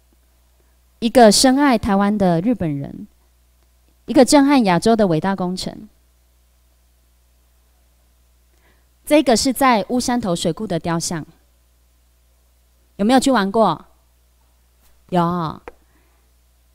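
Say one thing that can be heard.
A young woman speaks into a microphone in clear phrases with pauses, heard through a loudspeaker in a room.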